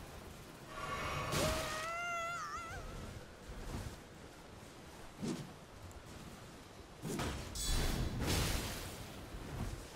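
A magic spell bursts with a shimmering rush.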